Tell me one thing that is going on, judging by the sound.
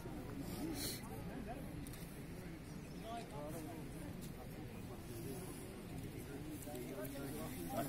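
Several men chat nearby outdoors.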